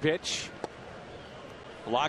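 A bat cracks against a baseball.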